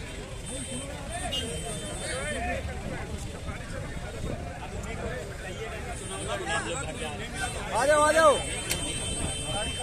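Men talk loudly in a crowd nearby.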